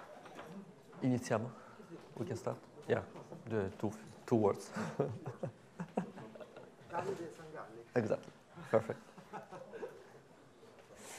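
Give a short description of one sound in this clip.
A man speaks casually through a microphone in a large room.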